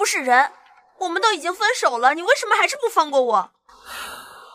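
A young woman answers in an upset, pleading voice, close by.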